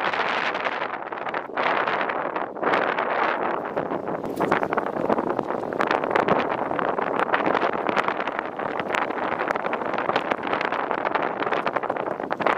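Wind blows strongly outdoors.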